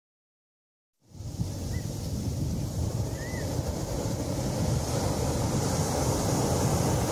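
Waves break and wash onto a beach nearby.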